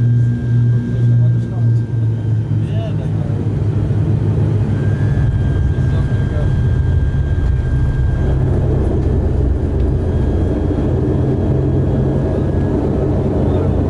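A turboprop airliner's engine drones, heard from inside the cabin as it taxis.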